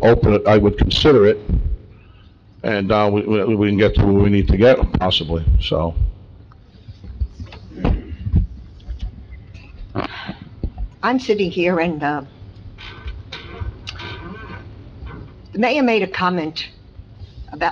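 A man speaks calmly through a microphone in a large room, with pauses.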